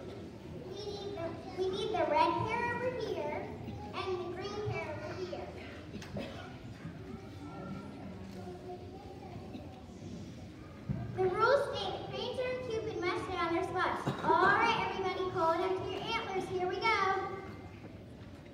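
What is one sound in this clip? A choir of children sings together in a large echoing hall.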